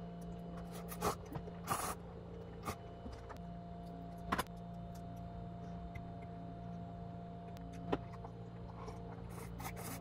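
A young woman slurps noodles from a cup.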